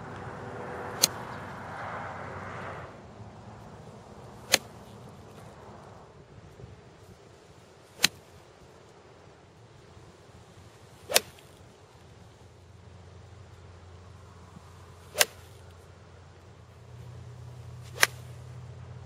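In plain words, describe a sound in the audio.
A golf club strikes a ball with a sharp click, again and again.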